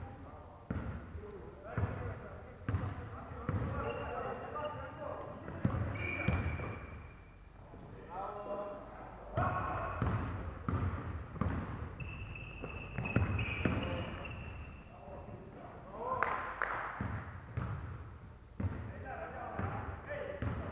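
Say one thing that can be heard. A basketball bounces on the court with echoing thuds.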